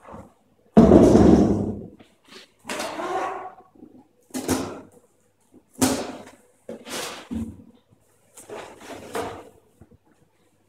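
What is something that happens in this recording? A knife slices through cardboard in short scraping bursts.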